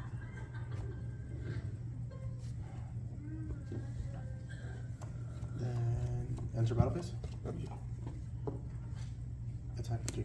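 Playing cards are placed and slid softly across a play mat.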